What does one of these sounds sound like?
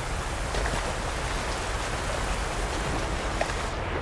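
Water splashes as a figure wades through a stream.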